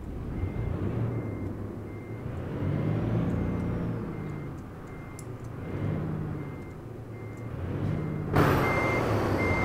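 A truck engine rumbles low, rising and falling in pitch.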